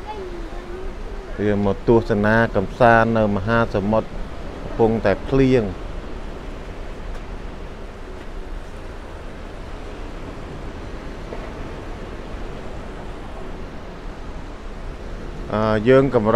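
Ocean waves wash softly onto a shore in the distance.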